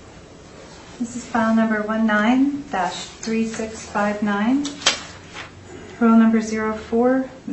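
A woman speaks calmly across a room.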